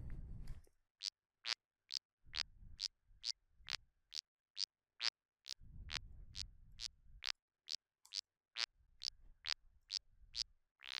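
Short electronic notes pulse in a steady, even rhythm.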